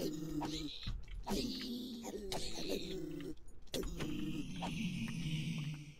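Sword blows land on creatures with short thuds.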